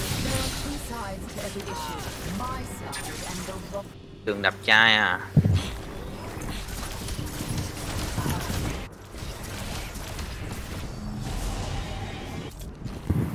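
Magic spells crackle and whoosh in short bursts.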